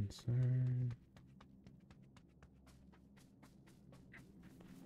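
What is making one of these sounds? Footsteps patter steadily through grass.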